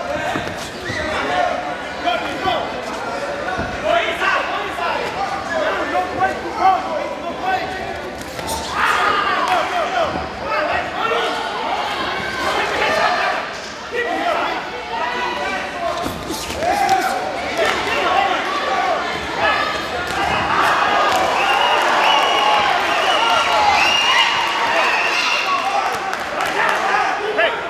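A crowd of spectators shouts and cheers loudly.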